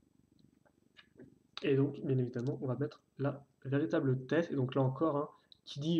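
Small plastic toy parts click as they are pulled apart.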